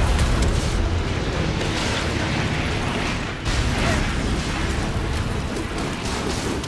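Debris crashes and rumbles loudly.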